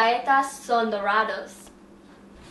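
A young woman speaks brightly close by.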